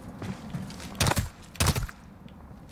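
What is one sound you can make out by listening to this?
A pistol fires two sharp, loud shots.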